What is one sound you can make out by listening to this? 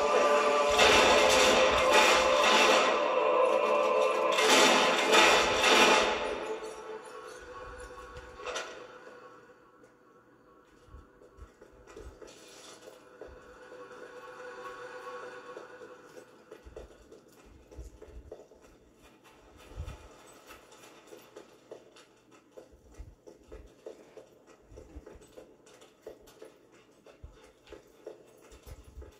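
Game music and effects play through a television speaker, loud at first and then quiet.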